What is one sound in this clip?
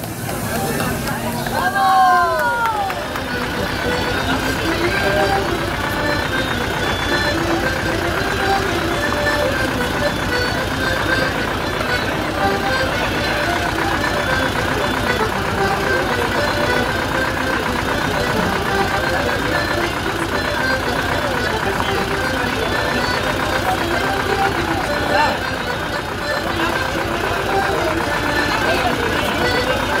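Folk music plays steadily outdoors.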